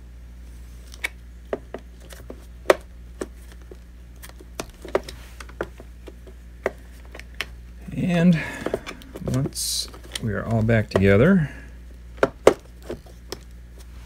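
Plastic parts click and knock as they are handled.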